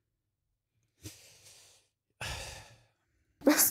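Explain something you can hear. A man speaks briefly and quietly into a close microphone.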